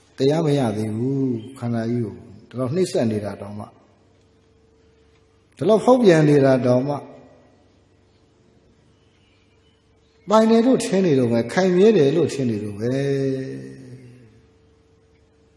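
A man chants slowly into a microphone in an echoing room, with long pauses.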